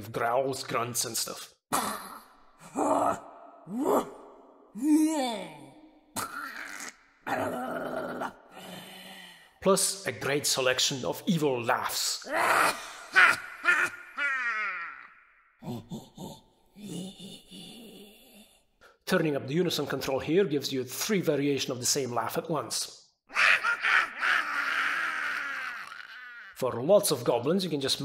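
A synthesized keyboard plays short sampled vocal notes, one after another.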